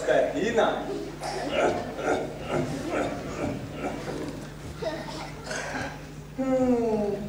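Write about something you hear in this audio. A performer speaks with animation, heard through a microphone.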